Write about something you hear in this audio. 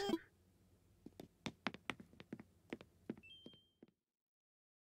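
Footsteps tap lightly across a floor.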